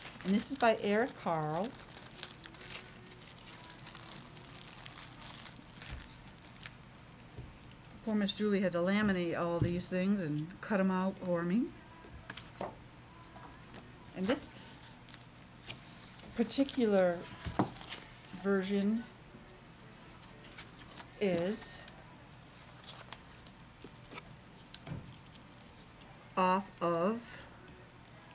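A middle-aged woman reads aloud through a face mask, close to a laptop microphone.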